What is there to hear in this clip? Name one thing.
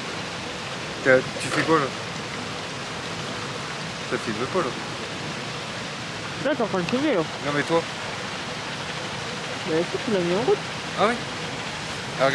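A stream flows steadily nearby.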